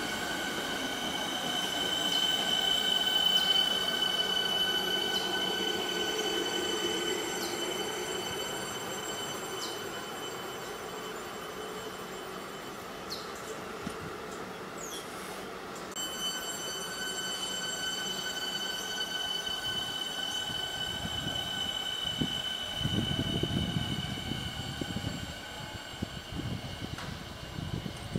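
An electric train rolls slowly past with a steady whine.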